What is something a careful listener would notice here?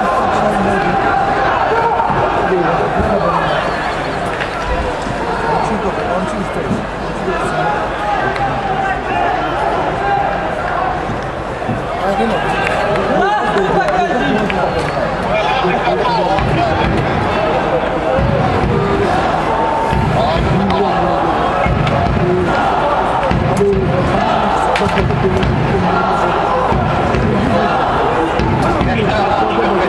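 A stadium crowd chants and cheers steadily in the distance.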